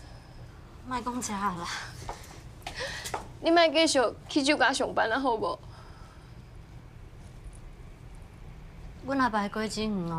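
Another young woman answers in a quiet, upset voice.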